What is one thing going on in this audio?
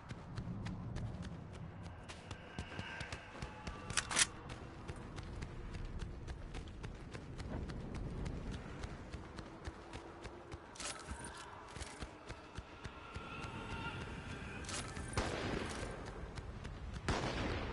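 Footsteps patter quickly on stone as a game character runs.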